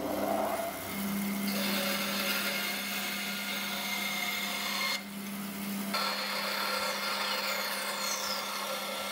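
A band saw blade cuts through wood with a rasping whine.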